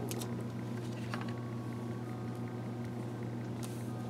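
A page turns with a soft flap.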